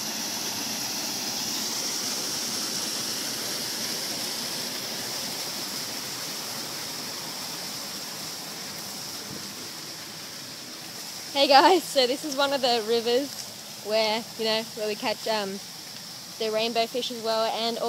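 Water splashes and gurgles over rocks.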